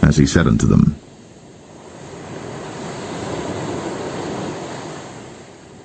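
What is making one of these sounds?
Waves wash onto a pebble beach.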